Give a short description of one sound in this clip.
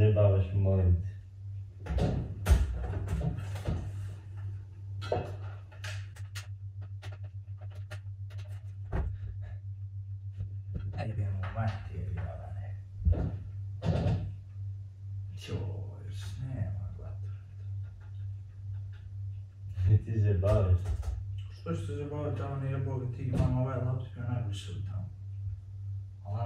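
Two young men talk with each other nearby, indoors.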